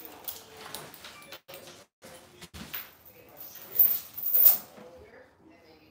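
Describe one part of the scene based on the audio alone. A belt buckle clinks and rattles.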